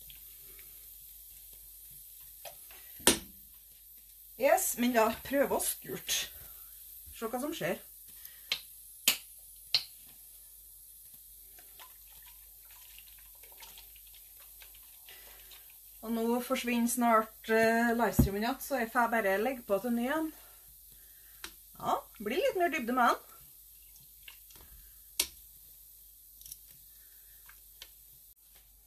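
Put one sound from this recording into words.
Water sloshes in a pot as yarn is stirred.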